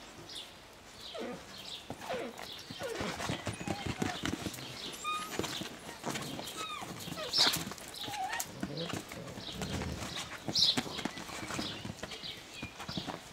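Puppies scuffle and patter about while playing.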